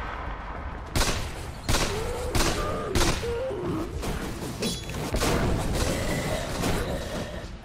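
Magic blasts and weapon hits crash in a video game fight.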